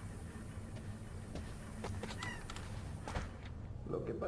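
Wooden shutter doors creak and swing open.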